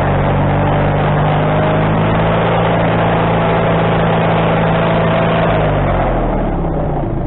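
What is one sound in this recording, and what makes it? A band saw blade cuts through a log with a loud whine, then eases off.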